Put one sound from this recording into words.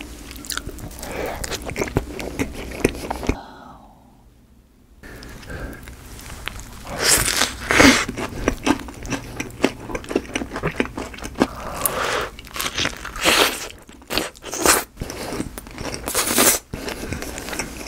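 Crispy bread crunches loudly as a young man bites into it.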